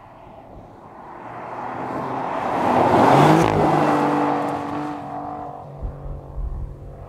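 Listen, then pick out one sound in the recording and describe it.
A car passes by, rising and fading.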